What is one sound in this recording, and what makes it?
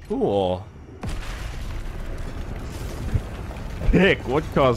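A building explodes with a deep, crashing boom.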